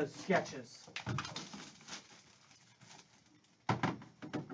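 Plastic wrap crinkles as it is pulled off a box.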